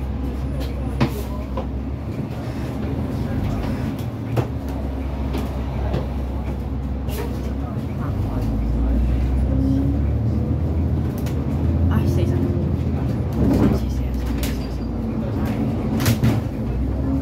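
The bus body rattles and clicks as it drives.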